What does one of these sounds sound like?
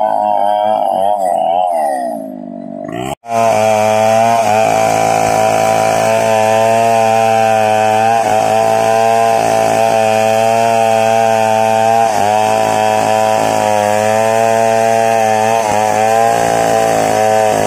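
A chainsaw roars loudly, its engine pitch rising and falling as it cuts through wood.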